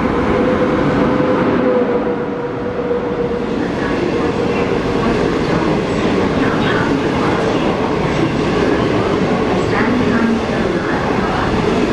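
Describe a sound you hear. Train wheels clatter loudly on the rails as carriages rush past close by.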